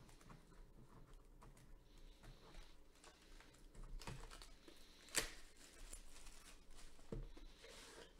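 Plastic wrap crinkles and tears as hands pull it off a box.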